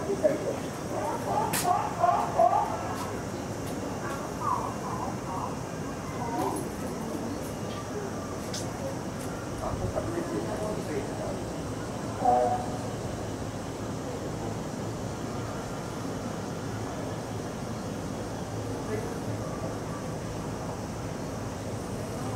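An orangutan slurps and sucks at a drinking tube.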